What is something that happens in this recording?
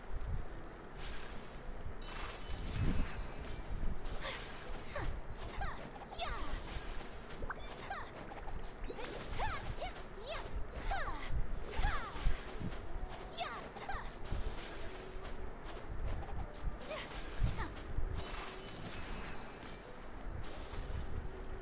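Ice cracks and shatters in bright chimes.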